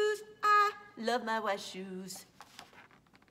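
A woman reads aloud close by in a lilting, sing-song voice.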